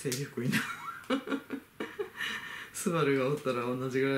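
A middle-aged adult laughs close up.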